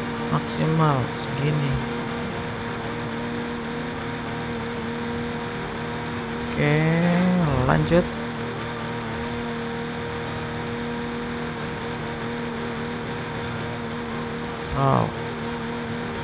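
A racing car engine briefly revs up and down in sharp bursts.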